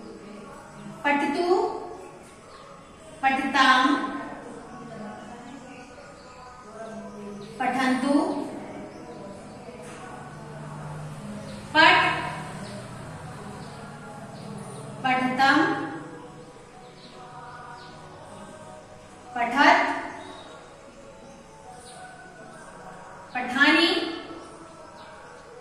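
A middle-aged woman speaks in loud, drawn-out bursts with pauses in between.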